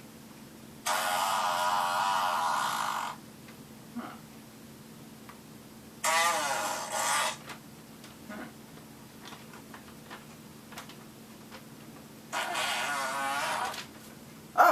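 A newspaper rustles as its pages are handled.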